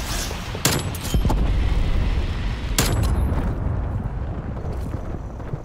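Missiles explode with loud booms.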